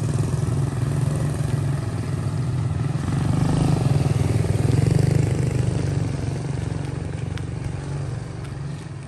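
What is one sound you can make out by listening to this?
A motorbike engine hums and passes close by, then fades away.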